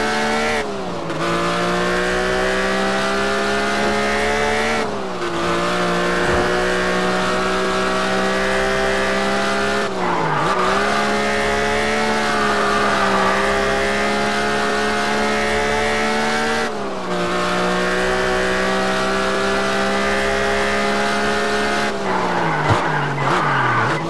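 A car engine roars steadily, dropping briefly with each gear change.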